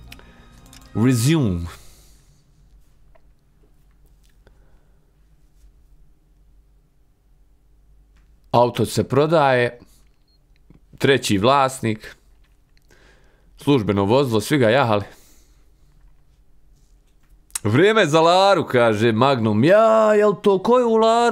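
A young man talks calmly into a close microphone, in short bursts with pauses.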